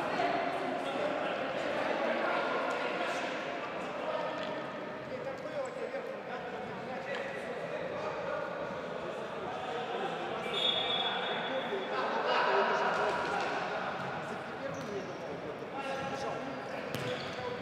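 A ball thumps as it is kicked.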